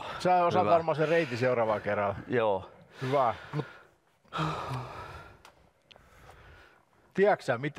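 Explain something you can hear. Another middle-aged man answers in a low voice nearby.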